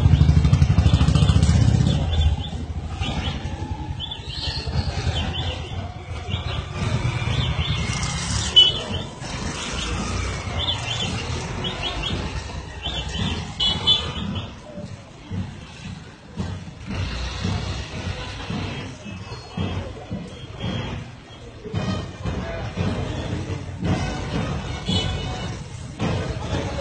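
Marchers' feet stamp in rhythm on the road.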